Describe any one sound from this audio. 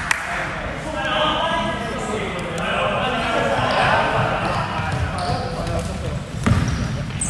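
Young men call out to each other across a large echoing hall.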